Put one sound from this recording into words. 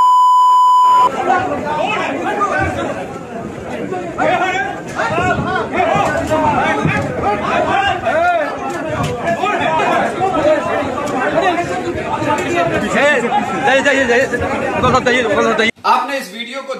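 A crowd of men shouts and argues loudly in a scuffle.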